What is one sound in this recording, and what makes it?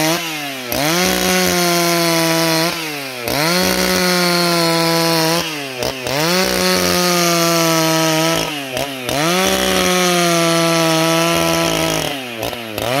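A chainsaw revs up and cuts through wood in long passes, dropping to idle between them.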